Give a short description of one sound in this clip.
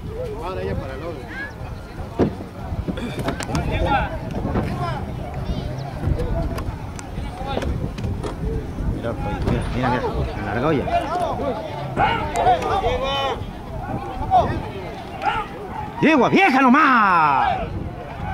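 A crowd of men and women chatters and shouts outdoors nearby.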